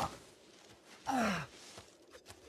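A man groans in pain close by.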